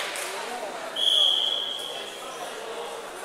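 A referee blows a whistle once.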